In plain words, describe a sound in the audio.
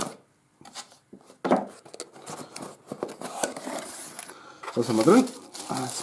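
A cardboard box lid is opened with a soft scrape.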